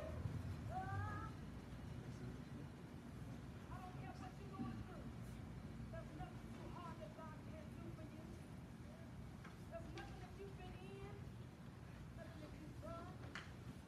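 Adults murmur quietly nearby.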